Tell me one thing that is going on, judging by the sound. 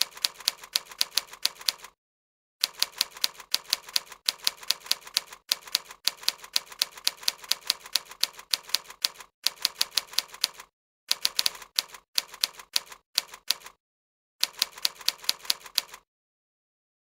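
Keyboard keys click in quick bursts of typing.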